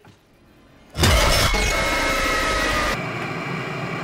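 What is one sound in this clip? A robotic creature lets out a loud, harsh screech.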